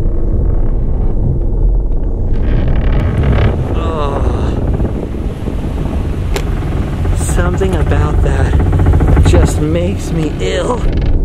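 A car engine hums and rumbles low.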